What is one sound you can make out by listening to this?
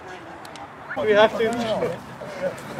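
A man talks loudly nearby among a group of men.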